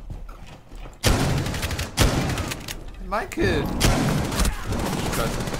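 Rapid gunshots fire loudly in bursts.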